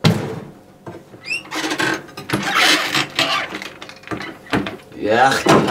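Cupboard doors creak and knock as they open and shut.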